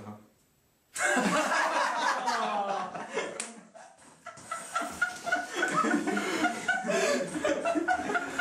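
Several young men laugh loudly together.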